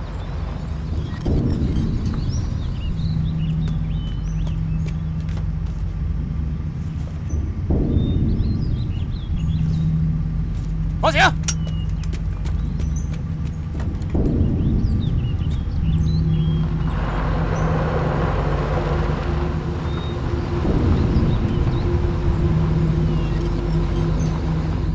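A truck engine rumbles as it drives.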